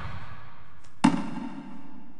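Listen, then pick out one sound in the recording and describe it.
A tree crashes down onto a man with a loud thud.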